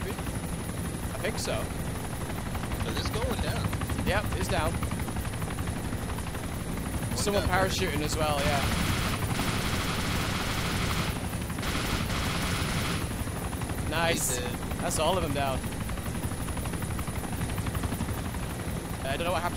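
Helicopter rotors thump steadily and loudly.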